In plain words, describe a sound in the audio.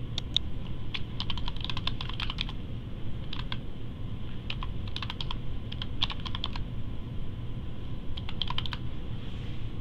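Keys on a keyboard clatter in quick bursts of typing.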